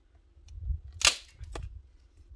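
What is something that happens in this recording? A woman snaps dry sticks by hand.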